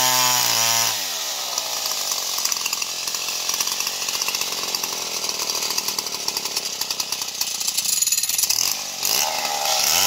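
A chainsaw chain rasps through wood.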